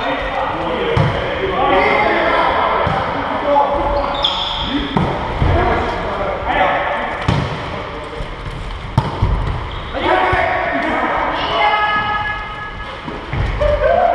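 A volleyball thuds as players hit it back and forth.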